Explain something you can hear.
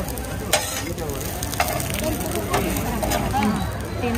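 A metal spatula scrapes and taps on a hot griddle.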